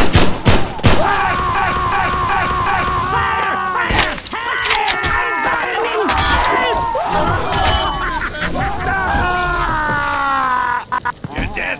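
A fire burns and crackles.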